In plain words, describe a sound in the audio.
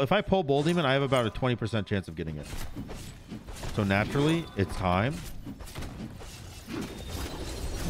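Game sound effects whoosh and clash during a fight.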